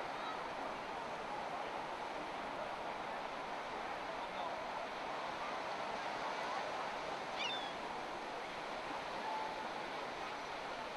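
A crowd of people chatter in the distance outdoors.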